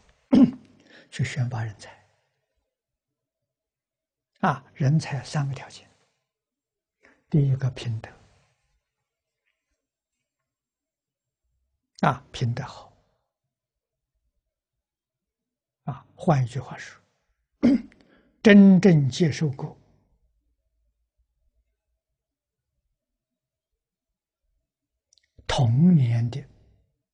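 An elderly man speaks calmly into a clip-on microphone, in short phrases with long pauses.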